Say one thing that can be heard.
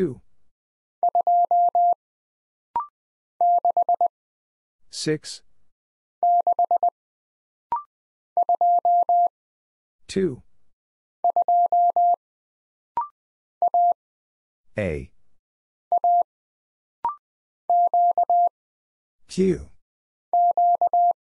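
Morse code beeps tap out in short, quick bursts.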